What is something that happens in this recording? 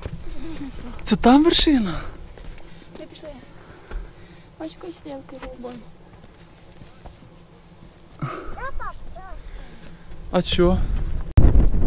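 A young child's voice chatters nearby.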